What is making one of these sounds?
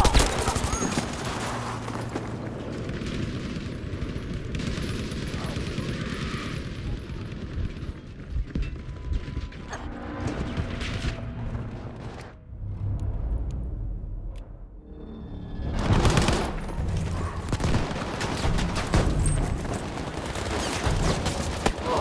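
Gunfire cracks and echoes in a hall.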